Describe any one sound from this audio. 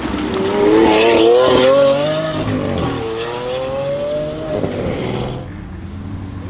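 A sports car engine roars loudly as the car accelerates away, its pitch rising through the gears.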